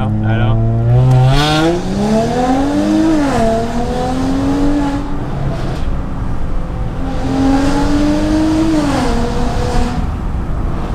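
A car engine revs loudly, rising and falling in pitch.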